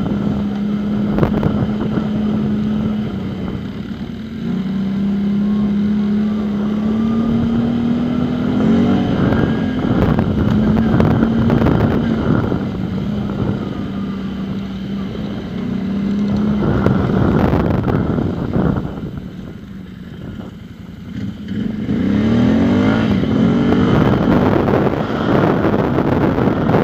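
Other quad bikes and dirt bikes whine and rev ahead.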